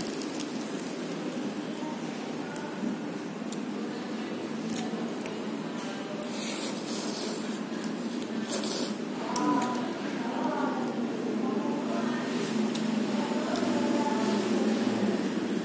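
A metal fork scrapes and clinks against a paper cup.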